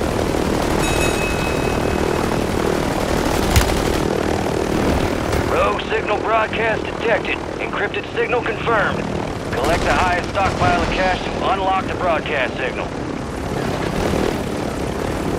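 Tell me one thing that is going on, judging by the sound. A helicopter's rotor drones steadily overhead.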